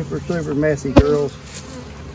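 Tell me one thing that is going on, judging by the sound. A wooden hive frame knocks sharply against the box.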